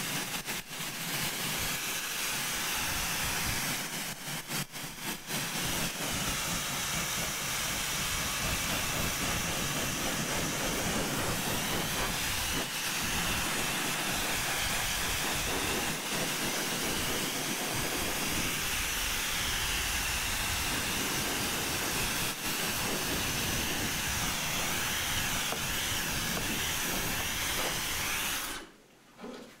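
A hair dryer blows a steady loud rush of air close by.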